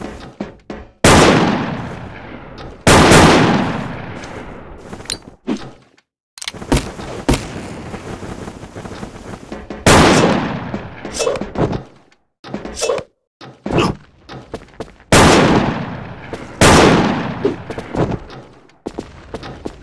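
A rifle fires loud single shots that boom and echo away.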